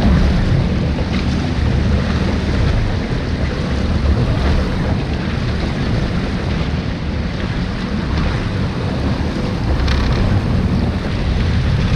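Water splashes against a jet ski hull.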